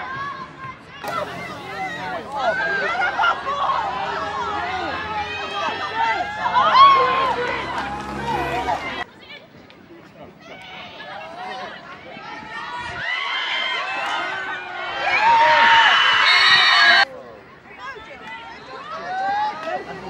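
Young women shout and call out to each other across an outdoor field.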